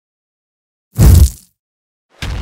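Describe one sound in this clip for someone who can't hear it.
A loud game explosion booms.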